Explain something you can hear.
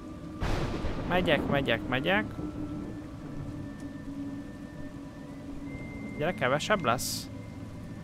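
A man talks casually through a microphone.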